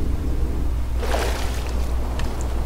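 Water splashes as a swimmer breaks the surface.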